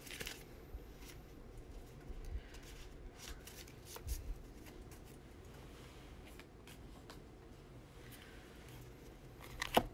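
Paper rustles close by.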